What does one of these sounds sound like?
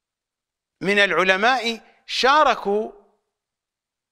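A middle-aged man speaks emphatically into a close microphone.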